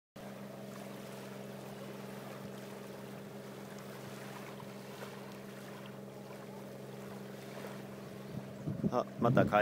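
Small waves lap softly at the shore.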